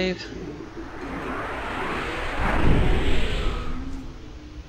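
A magical shimmering whoosh swells and fades.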